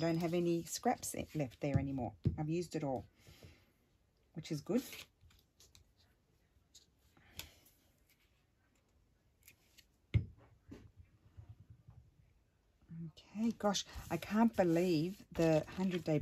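Paper rustles as it is handled and pressed down.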